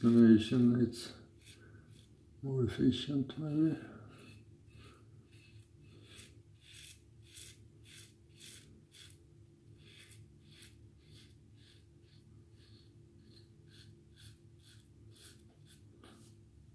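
A razor scrapes across stubble in short, repeated strokes.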